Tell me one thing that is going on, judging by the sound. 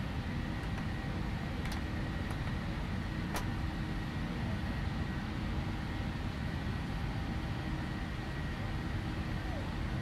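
Jet engines rumble and roar steadily, heard from inside an airliner's cockpit.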